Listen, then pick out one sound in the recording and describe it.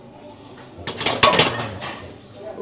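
A loaded barbell clanks into its rack.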